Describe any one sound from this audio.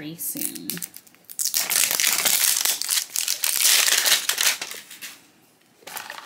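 A plastic capsule clicks and snaps open.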